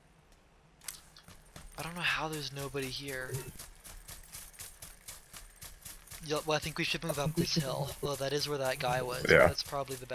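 Footsteps run through dry grass.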